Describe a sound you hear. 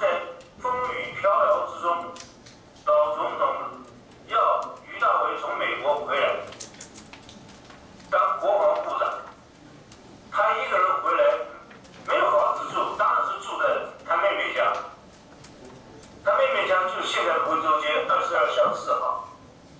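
An elderly man speaks calmly over an online call through a loudspeaker, with pauses.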